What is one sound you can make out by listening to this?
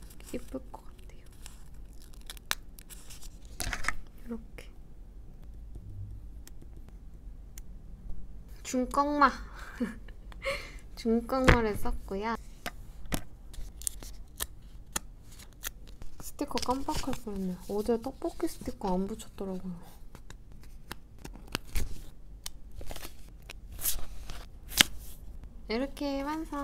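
Stickers peel off a backing sheet with soft crackling.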